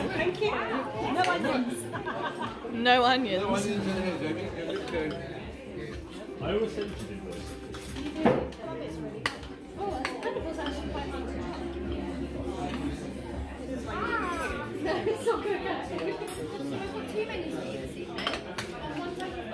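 Several adults chat and murmur nearby in a lively room.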